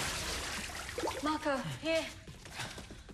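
A man speaks with feeling, close by.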